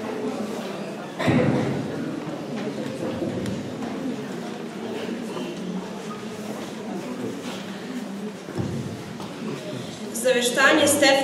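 A teenage girl speaks into a microphone, heard through loudspeakers in a large echoing hall.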